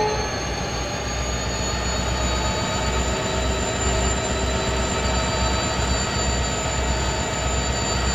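A steam locomotive chuffs in a steady rhythm as it pulls away.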